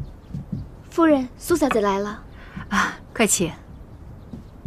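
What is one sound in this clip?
A young woman speaks loudly.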